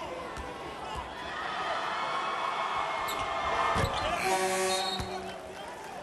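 A large crowd cheers loudly after a free throw.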